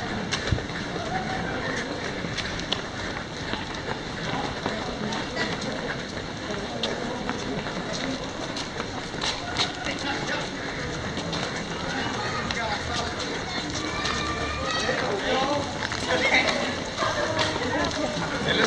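A crowd of people chatter outdoors in a street that echoes.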